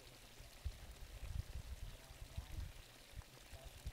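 Water pours from a pipe into a channel.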